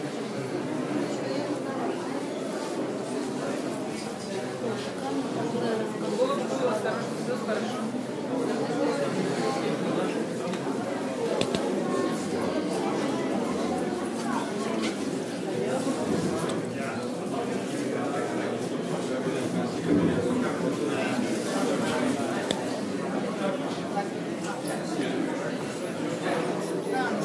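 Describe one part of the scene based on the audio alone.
A crowd murmurs and talks in a large echoing hall.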